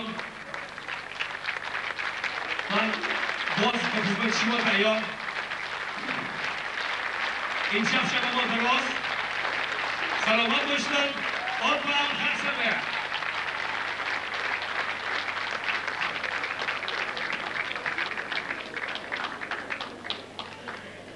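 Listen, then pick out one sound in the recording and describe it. A large audience applauds steadily in a hall.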